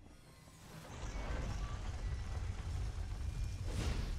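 A heavy door swings open with a deep rumble.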